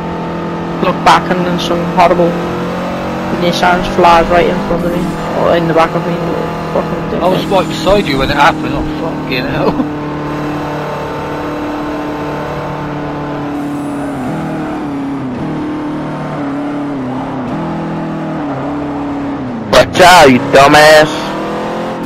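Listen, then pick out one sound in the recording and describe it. Tyres squeal loudly as a car drifts through corners.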